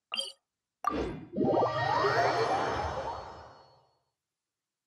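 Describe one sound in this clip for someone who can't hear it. A rising magical whoosh swells and fades.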